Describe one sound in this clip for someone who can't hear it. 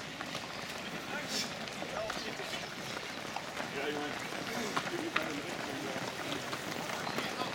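Many running shoes patter on pavement.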